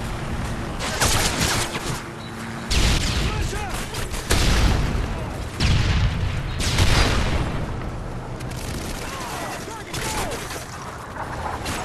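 Rifle gunfire sounds out in short bursts in a video game.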